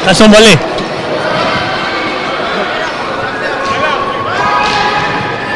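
Sneakers squeak on a gym floor in a large echoing hall.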